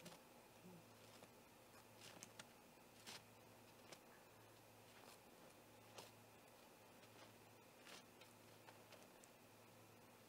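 An owl shuffles and scratches against wood in a nest.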